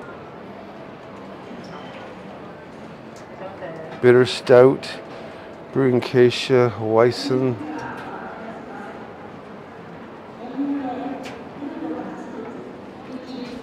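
People murmur quietly in the background of a large echoing hall.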